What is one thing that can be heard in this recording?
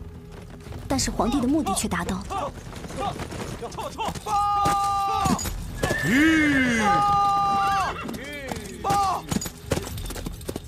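Horses' hooves clop on a dirt path at a walk.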